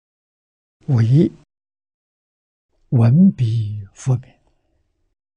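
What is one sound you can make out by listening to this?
An elderly man speaks calmly in short phrases, close to a microphone.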